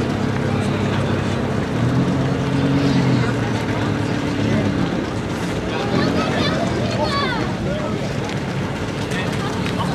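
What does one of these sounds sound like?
An Audi RS6 Avant with a twin-turbo V8 rolls up slowly.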